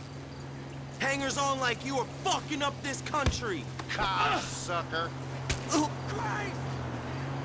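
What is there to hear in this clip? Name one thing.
A man shouts angrily.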